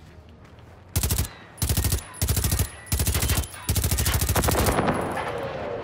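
A submachine gun fires in rapid, loud bursts.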